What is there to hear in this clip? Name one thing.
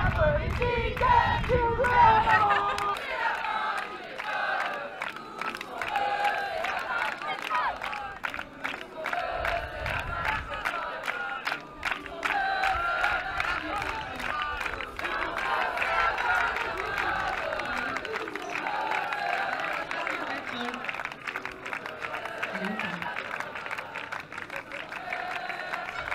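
A large crowd chants and shouts together outdoors.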